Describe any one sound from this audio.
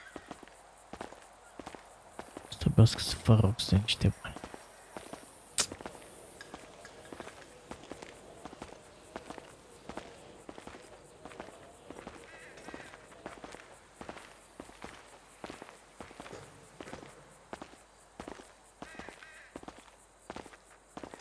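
Footsteps crunch steadily on dry ground.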